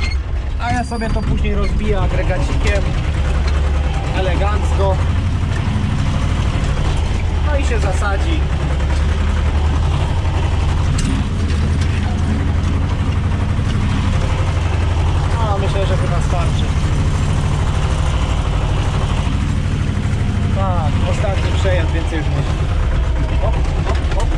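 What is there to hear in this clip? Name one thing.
A tractor engine drones loudly and steadily from inside the cab.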